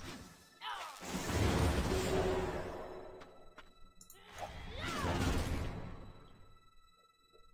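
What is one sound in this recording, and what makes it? A magic spell bursts with a rushing whoosh.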